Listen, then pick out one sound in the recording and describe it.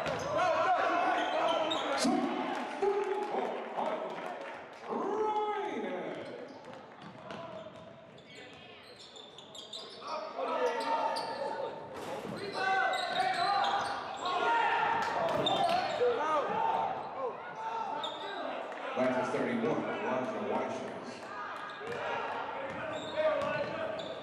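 A crowd of spectators cheers and shouts in a large echoing gym.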